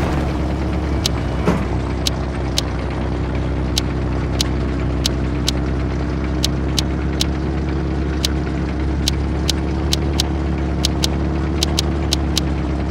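Short, high game menu clicks sound again and again as upgrade buttons are pressed.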